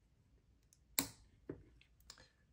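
A small plastic lever clicks shut.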